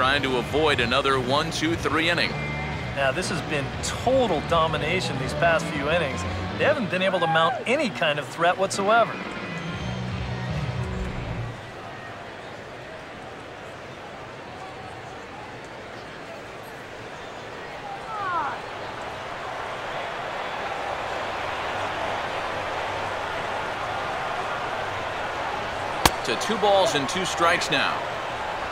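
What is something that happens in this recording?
A large crowd murmurs and cheers in a big open stadium.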